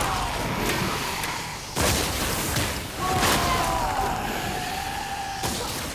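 Fire bursts and roars in short blasts.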